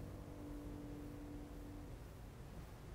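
A piano note rings and fades.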